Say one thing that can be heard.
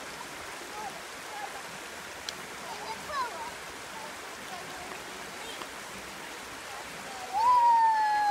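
Water rushes steadily over rocks outdoors.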